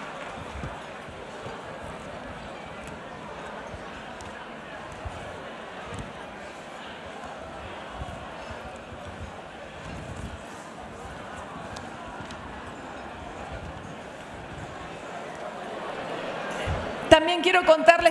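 A large crowd chatters and murmurs in a big echoing hall.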